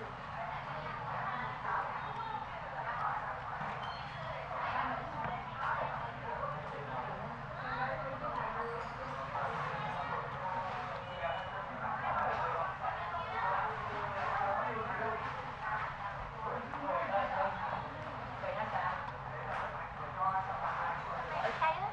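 Several people chatter nearby in a busy room.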